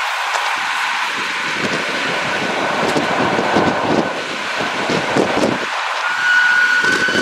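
Metal wheels squeal faintly on the rails.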